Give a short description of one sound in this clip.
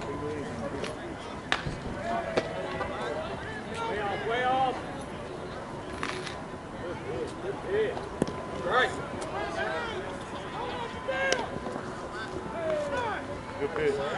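Men call out and chatter across an open field outdoors.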